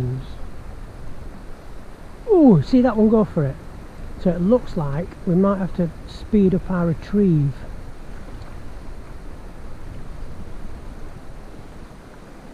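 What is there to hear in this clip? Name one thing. A shallow river ripples and trickles softly over stones, outdoors.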